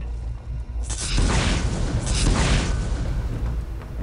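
A loud blast roars and rumbles.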